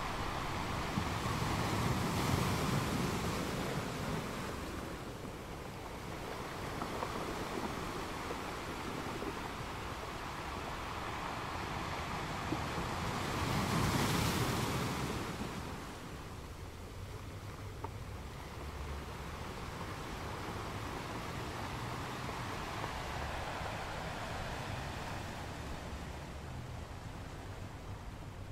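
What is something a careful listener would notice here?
Foamy water washes and hisses over rocks close by.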